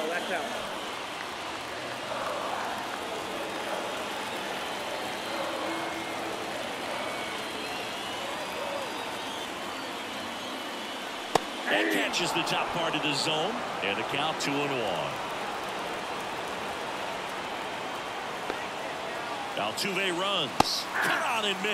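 A stadium crowd murmurs steadily in the background.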